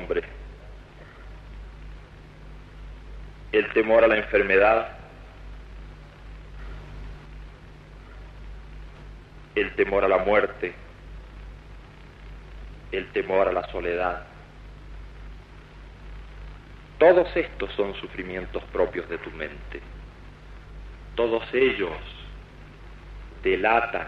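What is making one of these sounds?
A man speaks slowly into a microphone outdoors, with long pauses between phrases.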